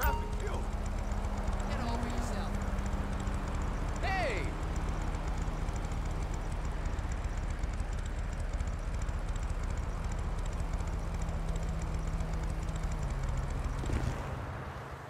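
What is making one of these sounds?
A motorcycle engine idles with a steady low rumble, then cuts off.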